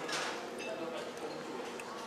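Cutlery clinks and scrapes on a plate.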